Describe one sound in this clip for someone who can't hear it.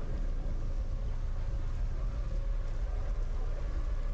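A waterfall roars.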